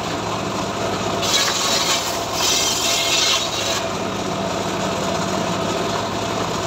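A sawmill engine hums steadily.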